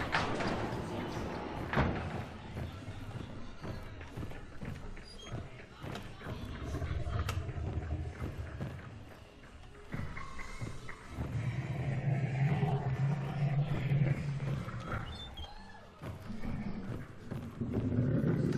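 Footsteps thud on creaking wooden floorboards.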